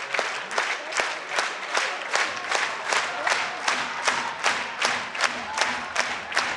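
An audience claps in a steady rhythm in a large hall.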